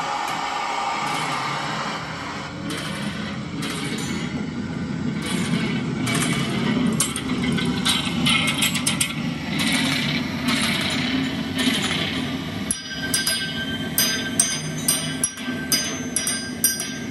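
A homemade stringed instrument is bowed, making a buzzing, scraping drone.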